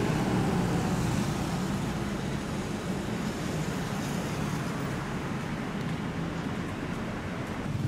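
An SUV's engine rumbles as it pulls away.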